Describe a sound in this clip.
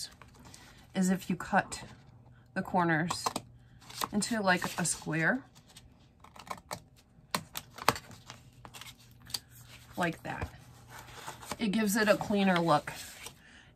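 A craft knife scores and scrapes along cardboard.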